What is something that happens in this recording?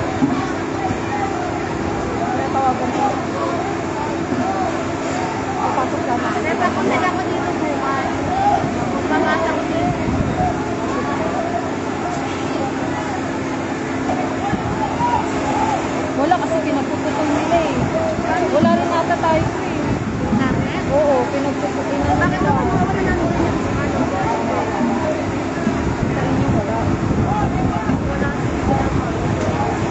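Many men and women shout and call out excitedly outdoors.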